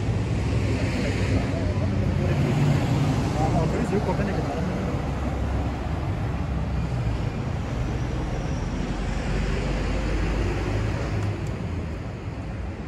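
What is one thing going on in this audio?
City traffic rumbles nearby outdoors.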